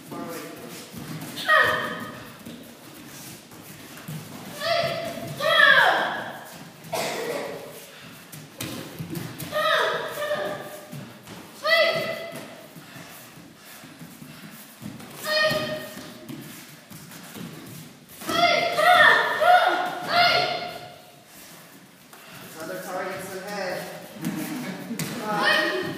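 Bare feet thump and shuffle on foam mats.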